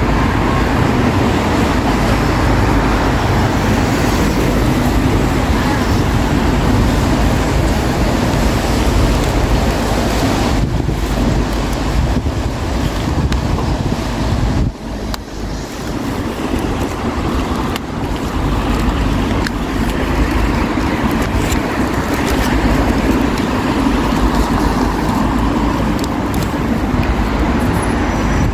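Light rain falls steadily outdoors.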